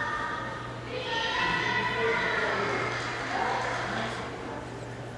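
A group of young children sing together, heard through loudspeakers.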